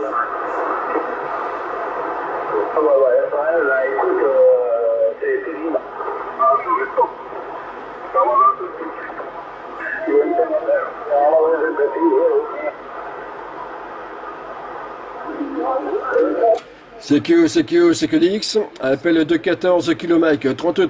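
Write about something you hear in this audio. Crackly voices come through a radio loudspeaker.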